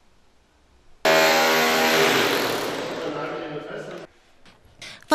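A power tool whirs loudly against a wall.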